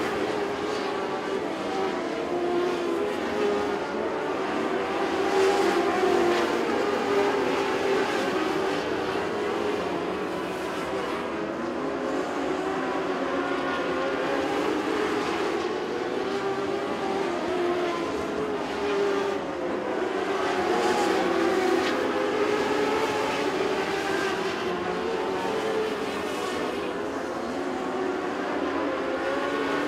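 Race car engines roar loudly as they speed around a dirt track.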